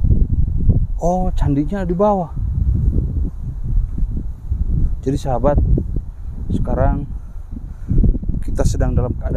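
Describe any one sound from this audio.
A man speaks calmly and close by, outdoors.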